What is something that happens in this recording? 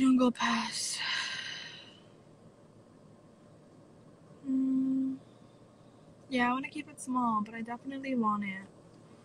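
A young woman talks casually and close up into a phone microphone.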